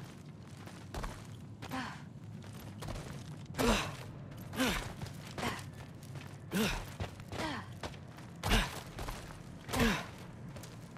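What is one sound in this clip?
Feet land with heavy thuds on stone.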